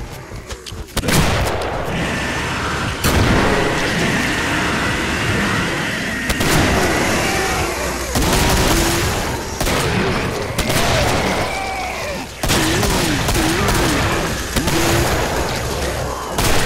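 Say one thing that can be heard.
Gunshots boom loudly, one after another.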